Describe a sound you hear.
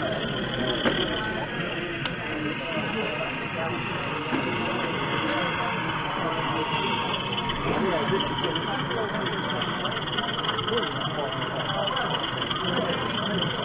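A model train rumbles and clicks slowly along the track.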